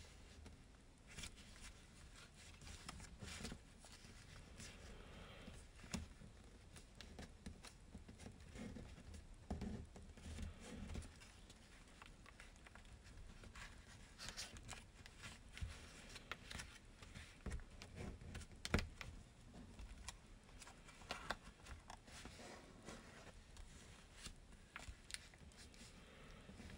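Paper crinkles and rustles softly as it is folded close by.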